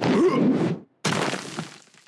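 A body thuds heavily to the ground.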